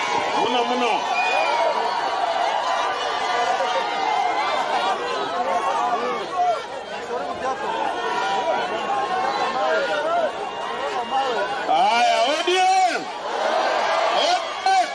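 A crowd chatters and cheers loudly outdoors.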